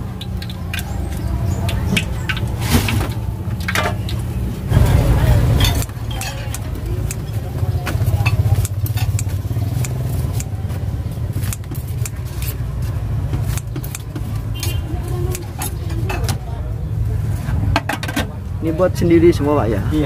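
Oil sizzles in a frying pan.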